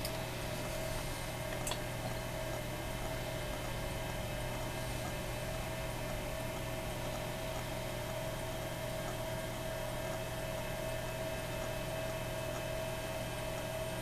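An old computer hums steadily with a faint high whine.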